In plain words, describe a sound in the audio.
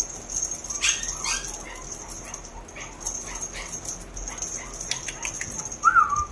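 A small dog pants quickly and softly close by.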